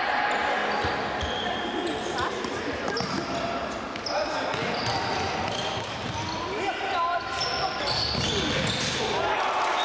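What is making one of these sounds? A ball is kicked with a dull thud.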